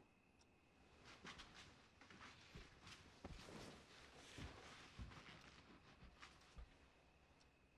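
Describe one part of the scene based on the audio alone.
Footsteps shuffle close by on a carpeted floor.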